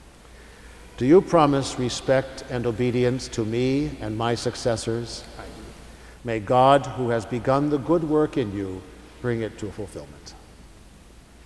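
An elderly man chants a prayer aloud in a large echoing hall.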